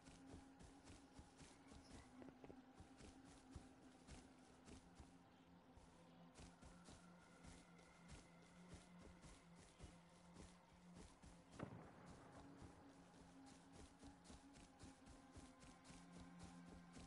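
Quick footsteps swish through tall grass.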